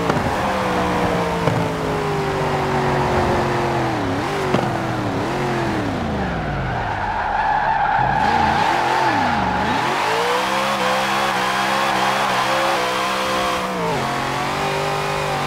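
A powerful car engine roars, its pitch climbing and dropping sharply with each gear change.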